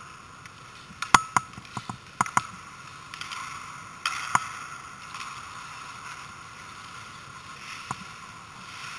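Hockey sticks and pucks clack sharply in a large echoing rink.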